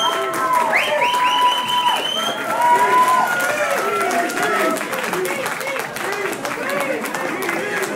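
A rock band plays electric guitars and drums loudly.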